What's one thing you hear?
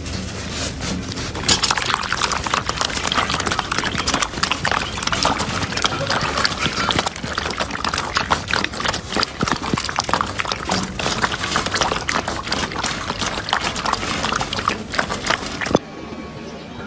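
Puppies lap and chew food noisily from a metal bowl.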